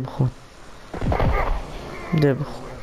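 A smoke bomb bursts with a hissing whoosh.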